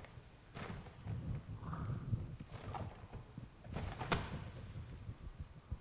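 Plastic sheeting crinkles and rustles underfoot.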